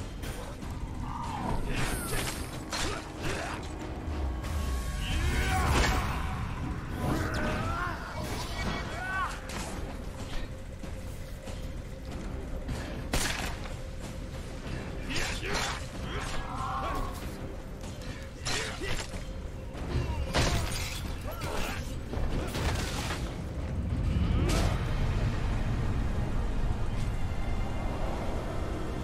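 Swords clash and strike in a game fight.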